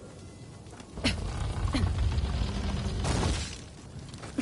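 Heavy wooden doors swing open with a loud rumble.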